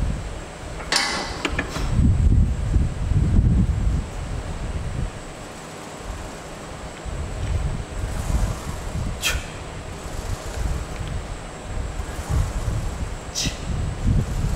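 A weight machine clanks as its weights move.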